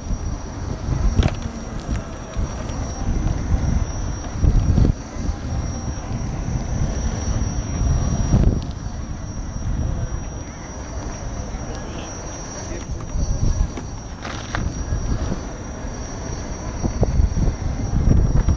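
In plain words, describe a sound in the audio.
Wind rushes and buffets loudly against a moving rider.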